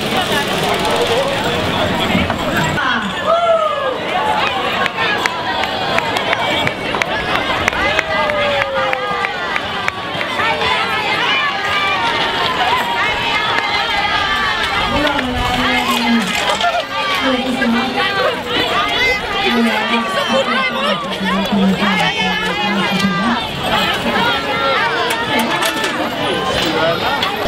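Small children shout and squeal excitedly.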